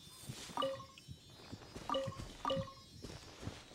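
Bright chimes ring out as items are picked up.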